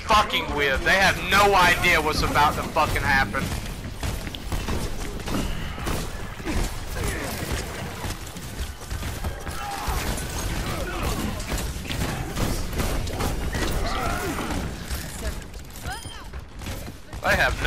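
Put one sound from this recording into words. Rapid gunfire rattles and bursts.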